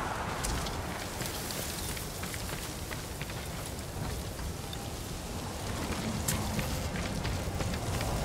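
Footsteps crunch quickly on a dirt path.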